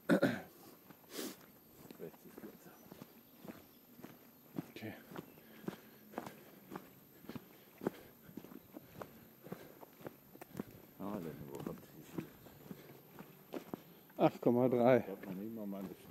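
Footsteps crunch steadily on a dirt and gravel path.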